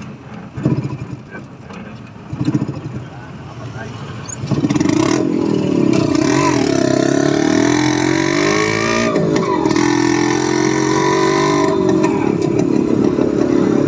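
A motorcycle engine runs close by, revving up and down as it rides.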